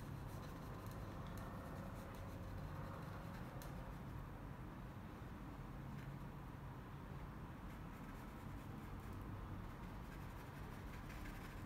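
A paintbrush dabs and scrapes softly against canvas.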